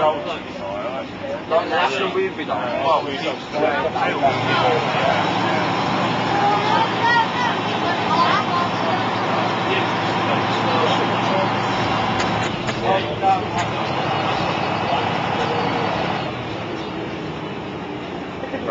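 A bus engine drones steadily as the bus drives along.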